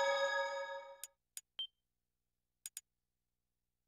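Short electronic menu beeps click.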